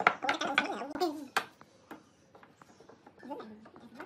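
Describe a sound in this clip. A wooden board knocks down onto a wooden workbench.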